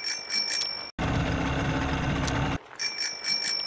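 A toy boat splashes through water.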